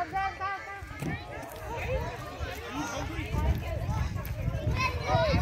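Children shout and chatter playfully nearby.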